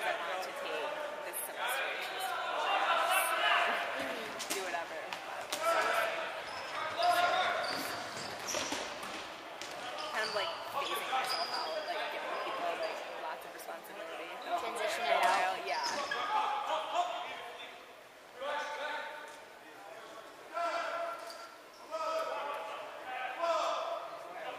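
Young players shout and call out across a large echoing gym.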